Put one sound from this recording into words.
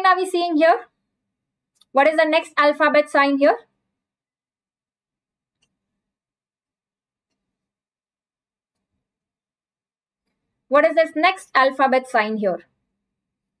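A young woman speaks calmly into a close microphone, in short phrases with long pauses.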